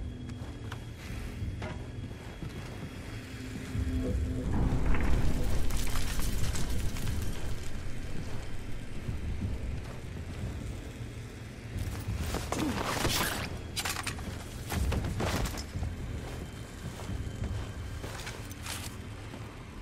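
Boots crunch over rubble as soldiers walk.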